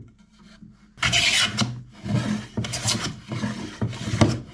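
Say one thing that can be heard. A hand plane shaves wood with rasping strokes.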